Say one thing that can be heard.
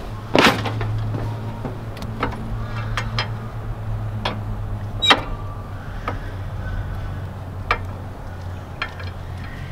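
A control lever clicks and clunks now and then.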